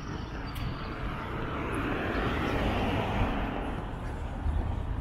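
A car drives past nearby, swelling and fading.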